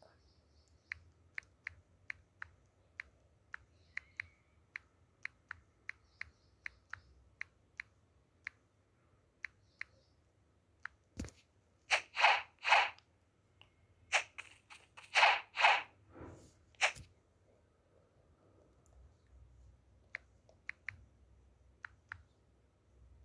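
Soft keyboard taps click quickly, one after another.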